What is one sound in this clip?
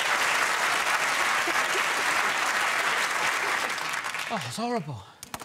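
A studio audience applauds and cheers loudly.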